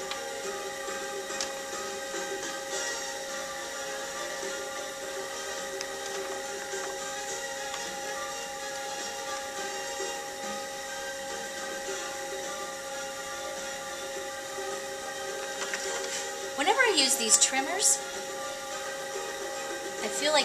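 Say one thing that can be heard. A wooden tool scrapes softly against spinning clay.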